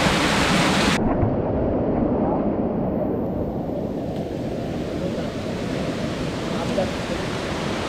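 Water flows and gurgles over rock nearby.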